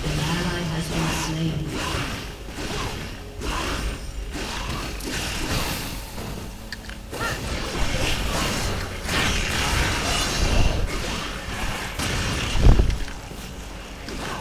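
Spell blasts and weapon hits crackle and thump in a busy video game fight.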